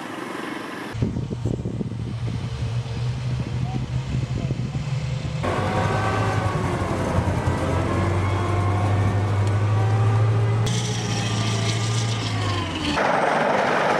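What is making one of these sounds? An armoured vehicle's engine rumbles deeply.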